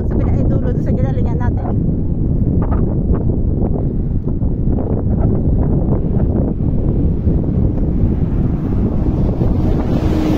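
Strong wind rumbles and buffets loudly outdoors.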